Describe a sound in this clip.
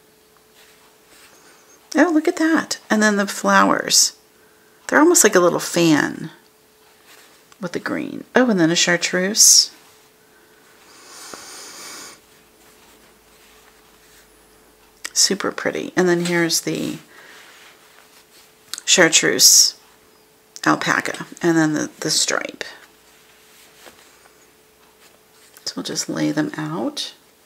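Cotton fabric rustles softly as hands handle it.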